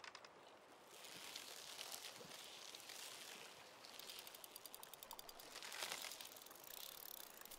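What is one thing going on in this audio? A fishing reel whirs softly as line is wound in.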